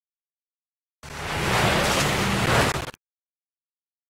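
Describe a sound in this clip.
Water splashes and gushes loudly.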